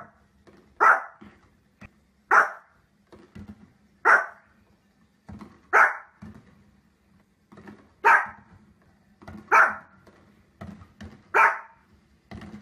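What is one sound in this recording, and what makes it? A small dog barks sharply at a steady pace.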